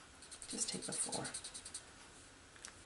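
A marker squeaks as it writes on a card.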